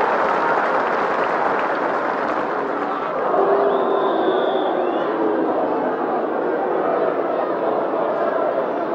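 A large stadium crowd roars and chants steadily outdoors.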